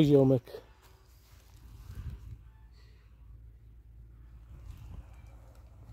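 Footsteps rustle through dry leaves.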